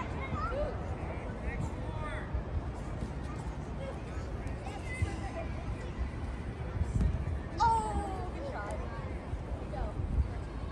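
Young children call out and shout while playing outdoors.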